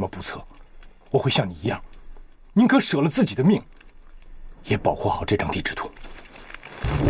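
A young man speaks quietly and earnestly nearby.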